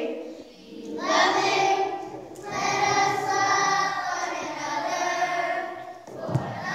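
A group of children sings together.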